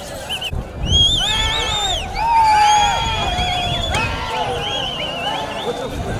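A crowd of men whistles and yells loudly.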